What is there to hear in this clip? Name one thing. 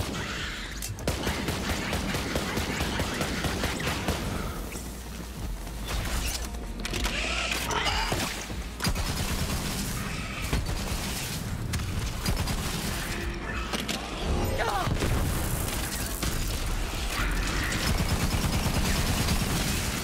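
Guns fire in rapid bursts with loud bangs.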